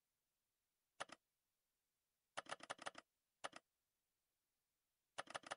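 A counter ticks up with short, quick bursts of electronic clicks.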